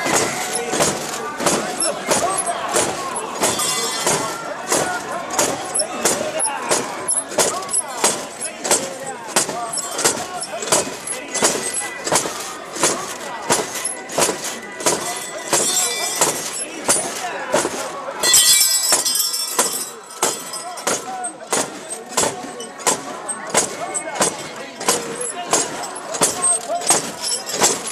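Metal bells on a carried shrine jingle with each step.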